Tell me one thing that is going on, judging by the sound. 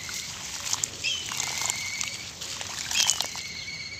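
Water sloshes and squelches under pressing hands.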